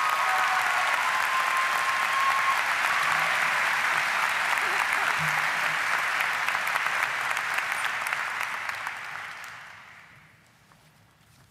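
An audience applauds in a large hall and the applause fades away.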